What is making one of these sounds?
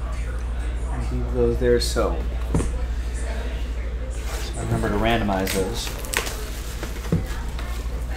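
Plastic wrapping crinkles as it is torn open.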